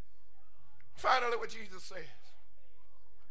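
A man suddenly calls out loudly.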